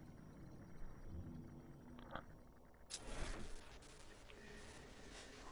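Heavy footsteps thud on a wooden floor.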